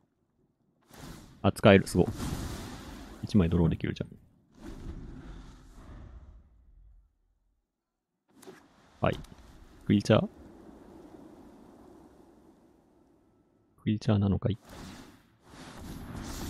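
A magical spell effect bursts with a bright whoosh and chime.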